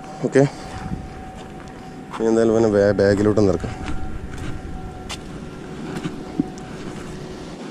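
Water laps gently against rocks.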